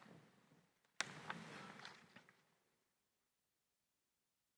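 Paper rustles as a sheet is set down.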